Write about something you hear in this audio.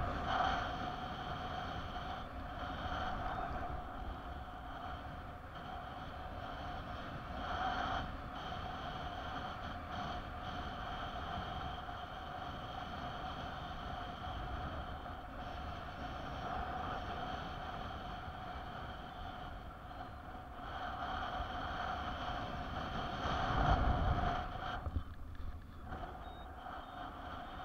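Wind rushes and buffets loudly past, outdoors in flight.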